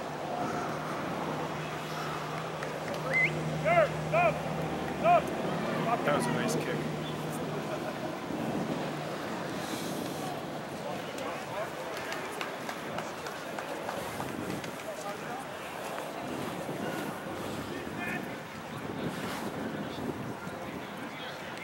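Players shout to one another across an open field.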